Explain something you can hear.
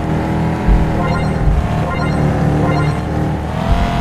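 Bright chimes ring out in short bursts.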